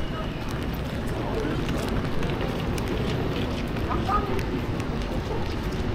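Rain patters steadily on wet pavement outdoors.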